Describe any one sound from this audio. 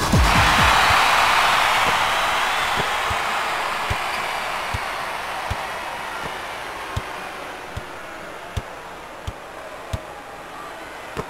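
A crowd cheers loudly and slowly fades.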